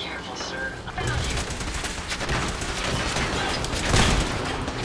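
An electric weapon crackles and blasts loudly.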